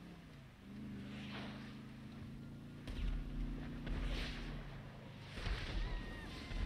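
Tyres skid and screech on the ground.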